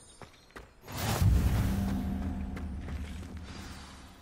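A magical whoosh swells and slowly fades.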